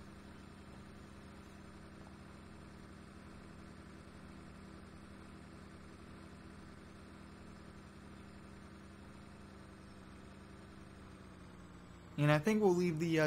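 A pickup truck's engine hums steadily as it drives along.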